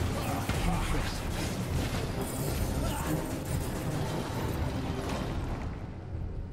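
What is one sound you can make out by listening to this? Blades swish and magic bursts crackle in a fast, busy fight.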